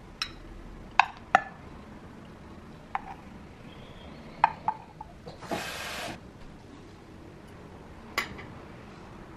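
Utensils clink against a bowl and plate.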